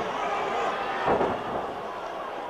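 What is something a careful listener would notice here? A wrestler is slammed onto the ring mat with a heavy thud.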